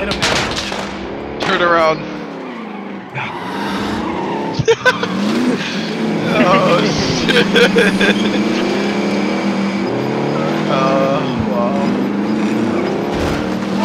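A vehicle engine roars and revs.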